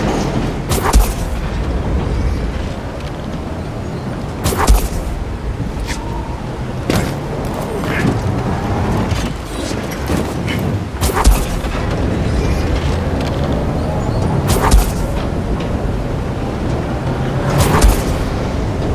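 Heavy thumps sound as a figure jumps and lands.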